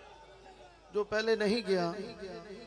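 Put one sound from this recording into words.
A crowd of men chant along loudly.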